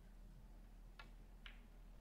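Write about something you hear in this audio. A cue tip strikes a ball with a sharp click.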